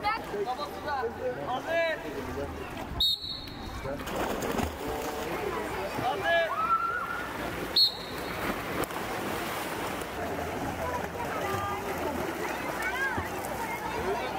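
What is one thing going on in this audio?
Children chatter and shout excitedly nearby.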